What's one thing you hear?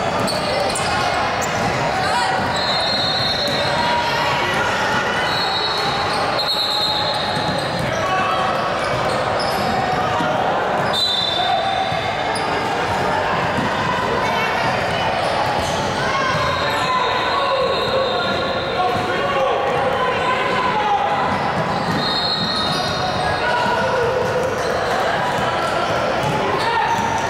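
Players and spectators call out and chatter in a large echoing gym.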